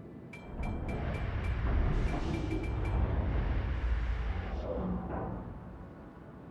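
A ship's engines rumble low and steady.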